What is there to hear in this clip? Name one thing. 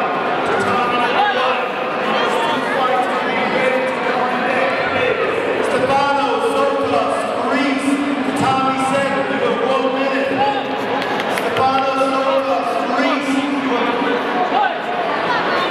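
A large crowd shouts and cheers in an echoing hall.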